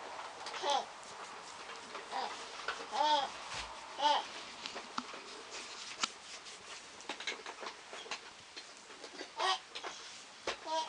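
Hands softly rub and press on bare skin.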